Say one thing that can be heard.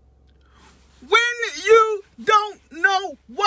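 A young man sings loudly and close by in long, high notes.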